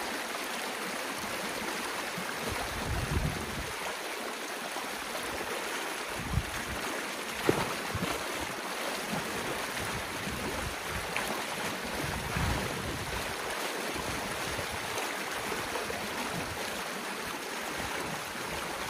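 Water splashes around a person wading.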